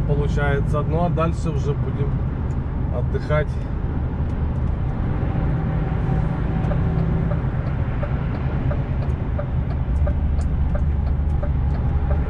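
A vehicle's engine hums steadily at speed.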